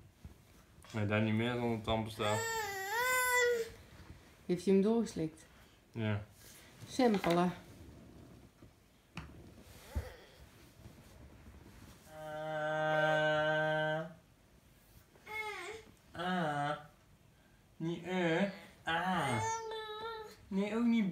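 A man talks softly and playfully to a baby.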